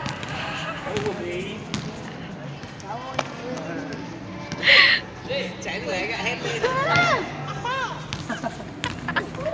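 Young people and children talk and call out nearby, outdoors.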